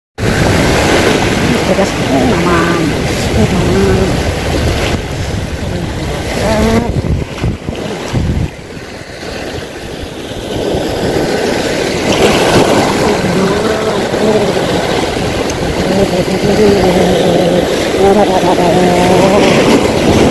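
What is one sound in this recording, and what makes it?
Waves splash and wash over rocks close by.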